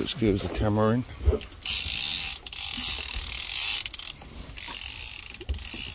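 A fishing reel clicks as it winds in line.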